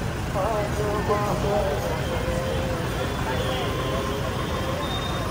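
Car engines rumble as vehicles crawl past slowly.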